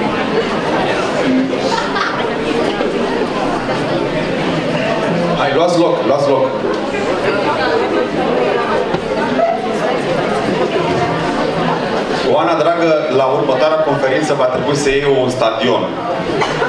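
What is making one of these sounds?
A man speaks to an audience through a microphone in an echoing hall.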